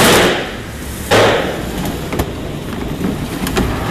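Metal trays scrape as they slide into an oven.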